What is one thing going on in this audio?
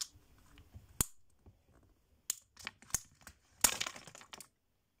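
Plastic capsules click and clatter in a girl's hands.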